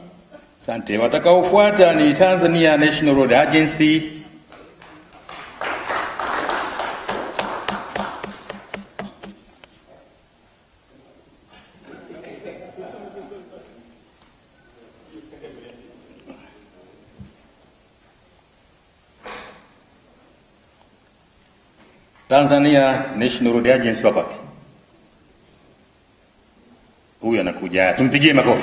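A man speaks loudly over a loudspeaker in a large hall.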